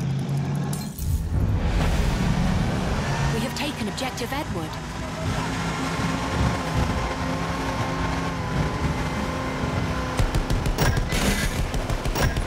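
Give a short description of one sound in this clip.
Water splashes and churns against a speeding boat.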